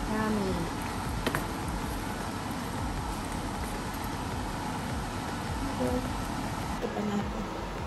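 A wooden spatula scrapes and stirs noodles in a pan.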